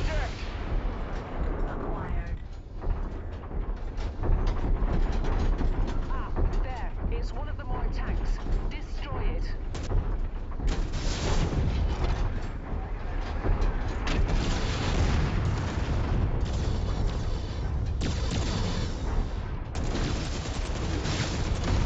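A heavy machine engine rumbles low and steadily.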